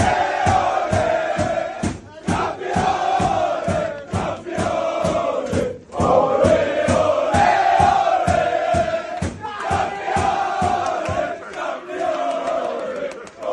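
Men clap and stomp to a fast steady beat.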